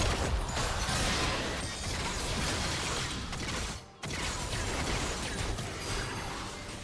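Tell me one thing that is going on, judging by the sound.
Magic spells whoosh and crackle in a fast fight between game characters.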